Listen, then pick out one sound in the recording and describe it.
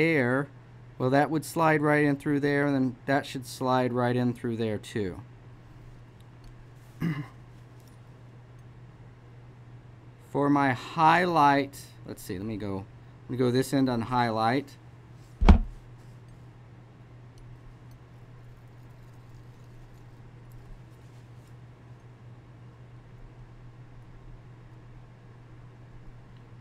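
A palette knife scrapes and dabs thick paint on cardboard.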